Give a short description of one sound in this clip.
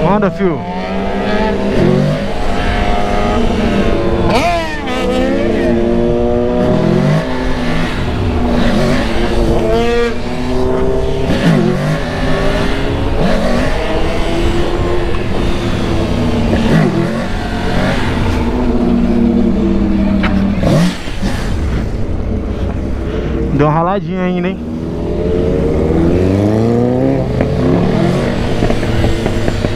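A motorcycle engine roars and revs up and down close by.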